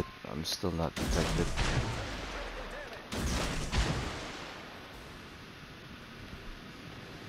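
Heavy naval guns fire with deep, rumbling booms.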